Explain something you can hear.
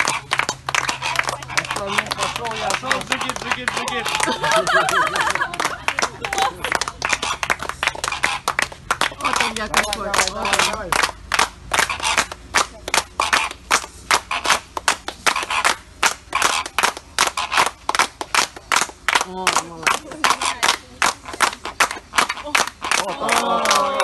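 A group of people clap their hands in rhythm close by.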